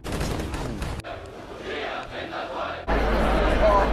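A crowd chants and cheers outdoors.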